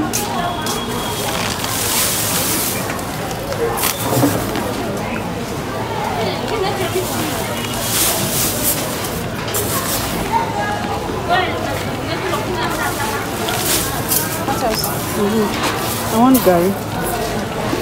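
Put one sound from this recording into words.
A bowl scoops into a sack of rice with a gritty scrape.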